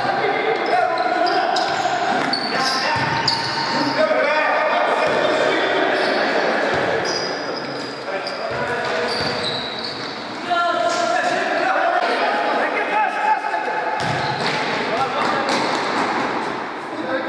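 Sneakers squeak sharply on the floor.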